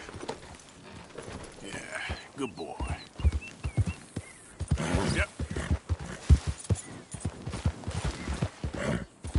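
A horse's hooves thud on the ground at a trot.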